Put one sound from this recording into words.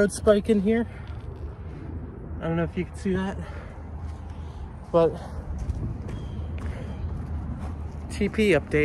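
A young man talks close to the microphone through a face mask.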